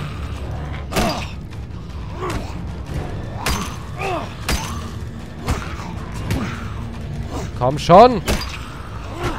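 Heavy blows thud and smack against flesh.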